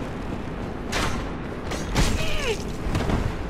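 A sword strikes with a sharp metallic clang.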